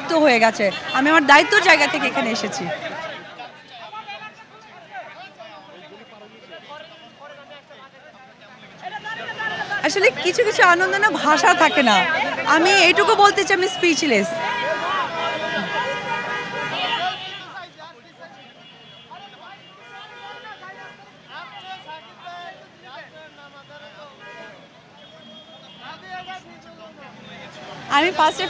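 A crowd murmurs in a busy street outdoors.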